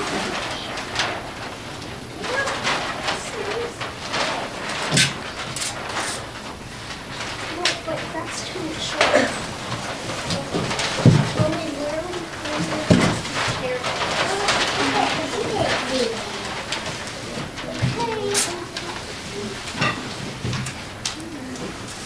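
Cardboard boxes rustle, thump and scrape as children handle them.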